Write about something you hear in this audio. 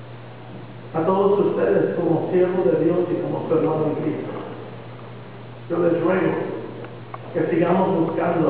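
A man speaks calmly into a microphone over loudspeakers in a large echoing hall.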